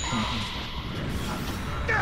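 An electric aura crackles and whooshes as a fighter powers up.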